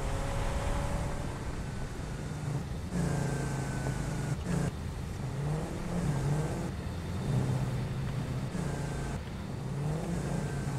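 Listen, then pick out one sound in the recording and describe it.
A small buggy engine hums as it drives over grass.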